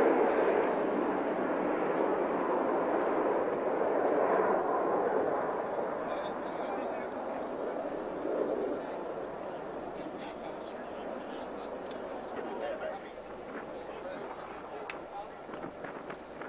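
A formation of jet aircraft roars overhead and fades into the distance.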